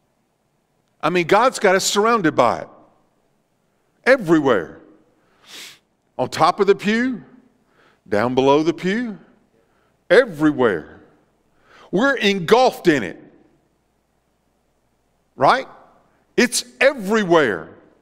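A middle-aged man speaks with animation in short bursts.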